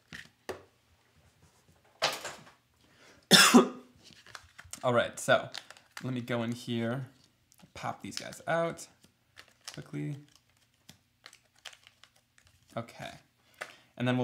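Paper rustles and crinkles as a sticker is peeled away.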